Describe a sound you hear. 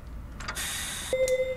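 An elevator chime rings.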